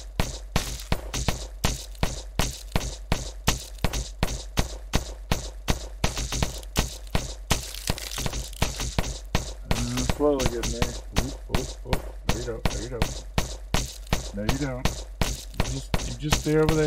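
Rapid electronic blaster shots fire in a quick, steady rhythm.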